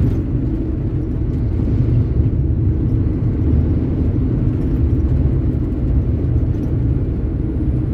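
A lorry approaches on the road.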